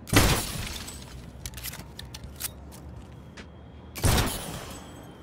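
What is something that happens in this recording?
A pistol fires loudly.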